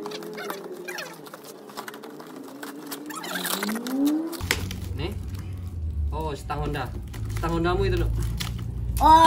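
Sacking rustles and scrapes on the ground nearby.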